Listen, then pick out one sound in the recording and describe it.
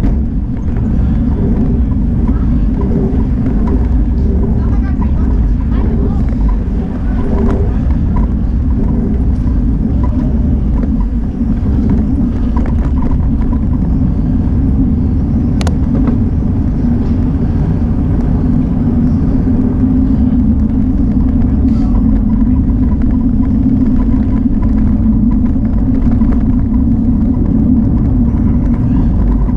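Tyres roll steadily over an asphalt street.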